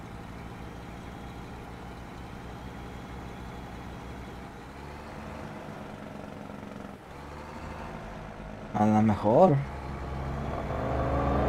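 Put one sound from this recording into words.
A truck engine drones steadily and grows louder toward the end.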